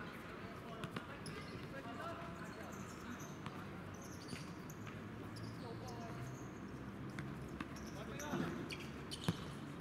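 A ball thuds as players kick it on a hard court.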